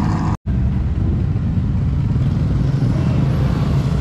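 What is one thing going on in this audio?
A sports car drives past on a road.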